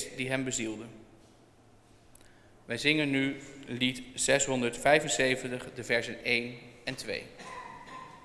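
A man reads out calmly through a microphone in an echoing hall.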